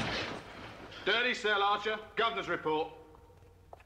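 A man speaks with feeling, heard through a small loudspeaker.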